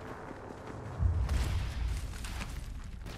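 A heavy thud sounds as someone lands on the ground.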